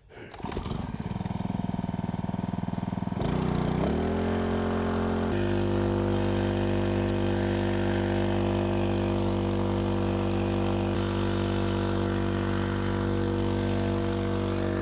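A small pump engine sputters to life, revs up and then runs with a loud, steady drone.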